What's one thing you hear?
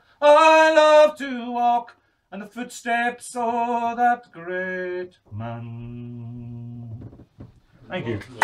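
A middle-aged man sings loudly, unaccompanied.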